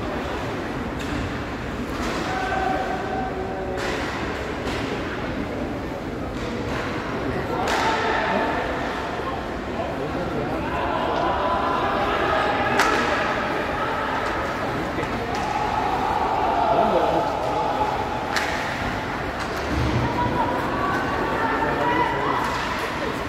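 Hockey sticks knock against a puck, with sharp clacks.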